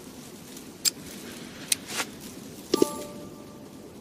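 A metal clasp clicks open on a bag.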